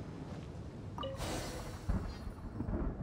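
A bright magical shimmer sounds as a charm is touched.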